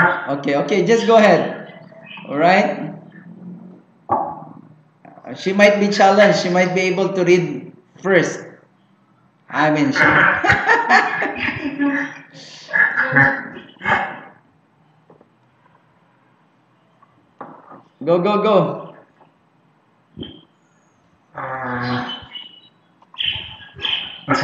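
A young man talks calmly through a microphone, pausing often.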